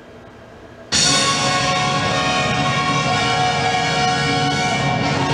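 Music starts suddenly and plays loudly over loudspeakers.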